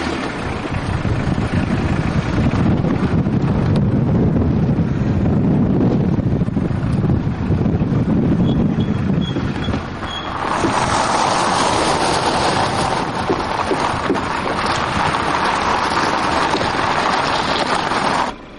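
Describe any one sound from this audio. Tyres crunch over loose gravel as a car drives slowly.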